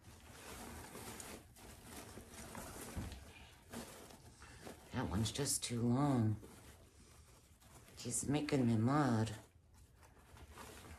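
Ribbon rustles as it is handled.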